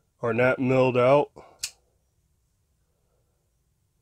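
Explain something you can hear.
A knife blade snaps open with a click.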